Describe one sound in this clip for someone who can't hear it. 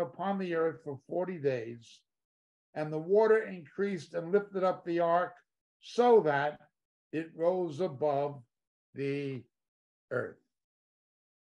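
A middle-aged man reads aloud calmly close to a microphone.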